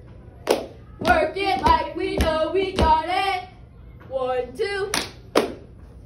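A young girl chants loudly nearby.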